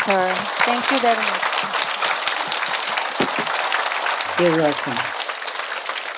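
A woman speaks warmly into a microphone.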